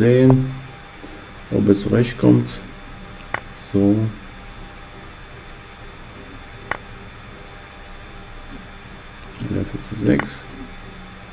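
An elderly man speaks calmly into a microphone, in short bursts.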